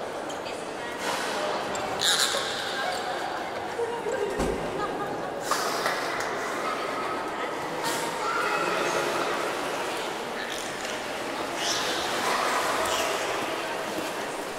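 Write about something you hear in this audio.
A woman calls out with animation in an echoing room.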